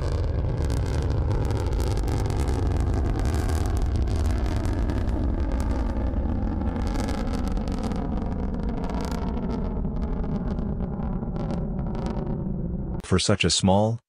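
A rocket engine roars steadily as a rocket climbs.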